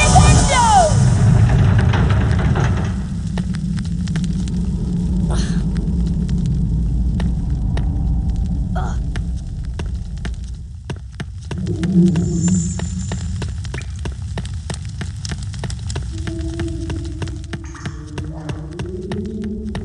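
Footsteps tap steadily on a stone floor.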